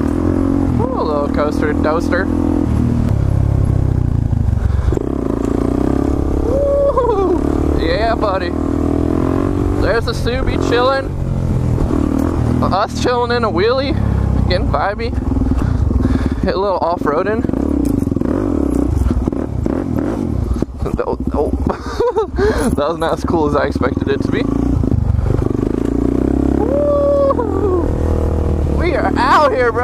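A motorcycle engine roars up close, revving up and down again and again.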